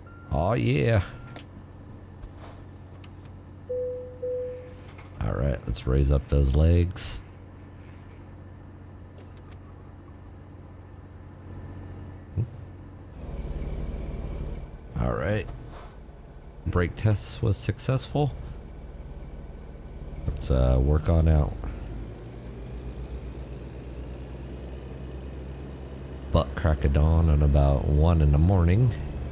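A truck engine hums steadily at idle and rumbles louder as the truck pulls away.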